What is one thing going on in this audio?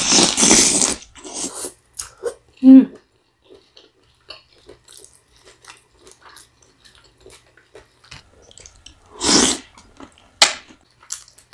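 A young woman chews and smacks her lips close to a microphone.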